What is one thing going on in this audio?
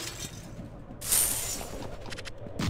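Coins jingle as gold is picked up.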